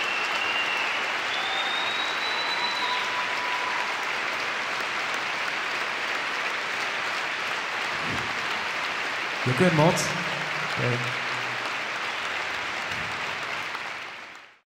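A large crowd cheers and applauds loudly in a big echoing hall.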